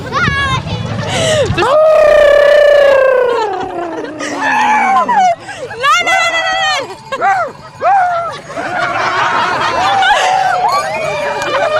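A voice shrieks and squeals in a high, gliding pitch up close.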